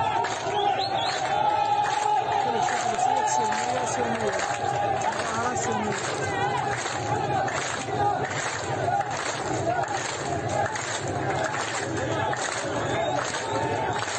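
A crowd claps their hands in rhythm.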